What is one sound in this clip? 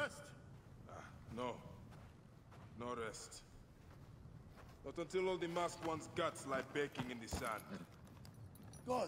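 A man answers in a deep, determined voice.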